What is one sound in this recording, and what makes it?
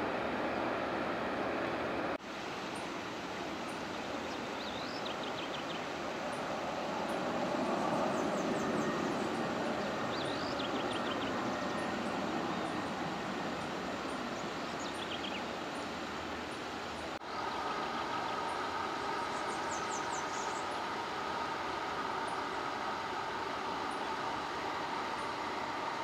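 Jet engines whine steadily nearby as an airliner taxis.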